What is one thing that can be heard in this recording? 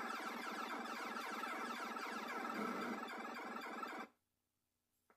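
Retro video game sounds crackle and buzz from a television speaker.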